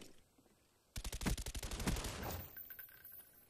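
A rifle fires a quick burst of shots.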